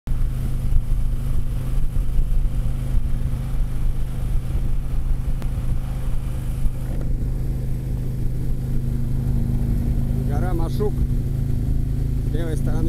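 A touring motorcycle's engine drones at highway cruising speed.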